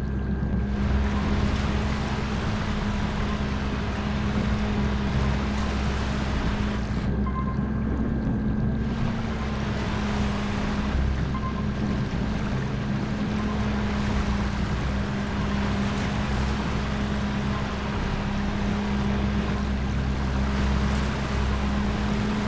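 A small submarine's engine hums steadily.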